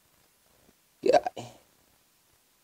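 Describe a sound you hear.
A cork pops out of a bottle.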